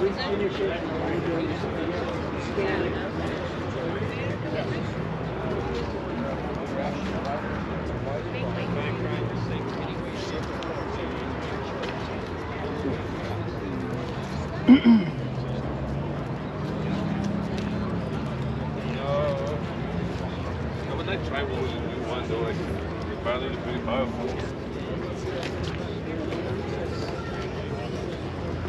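A crowd of people chatters outdoors in the background.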